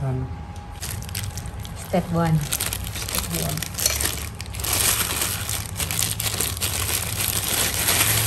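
A metal spoon scrapes on a ceramic bowl.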